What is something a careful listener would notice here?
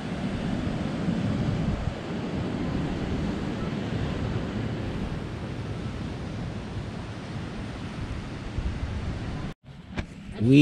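Wind blows steadily across the microphone outdoors.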